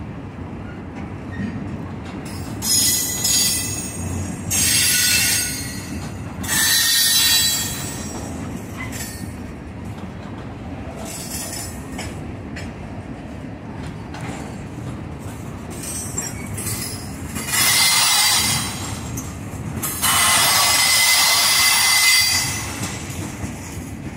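A freight train rumbles steadily close by.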